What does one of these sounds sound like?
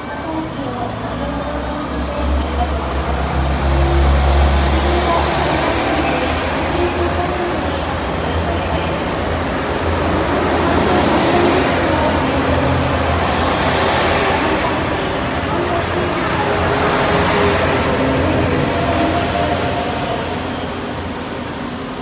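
A train rumbles past, its wheels clattering on the rails.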